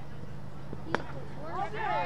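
A cricket bat knocks a ball.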